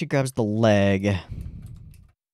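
A young man speaks loudly and with animation close to a microphone.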